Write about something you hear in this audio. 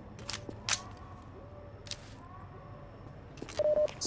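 A rifle is reloaded with metallic clicks.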